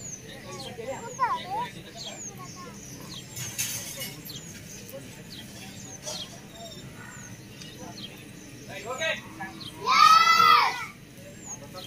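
Young children call out together loudly nearby.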